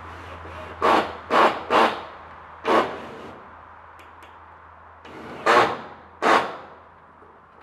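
Blows ring out on corrugated metal roofing.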